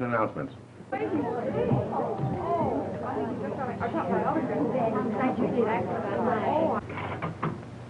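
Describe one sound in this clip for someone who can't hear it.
A crowd of men and women talks and exclaims excitedly.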